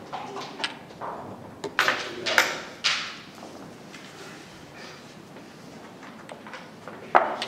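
Wooden checkers click and clack against a board.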